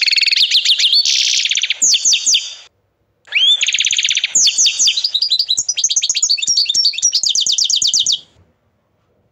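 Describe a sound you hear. A canary sings close by in fast trills, rolls and chirps.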